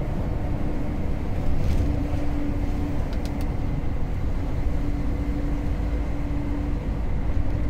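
Tyres roar on the highway.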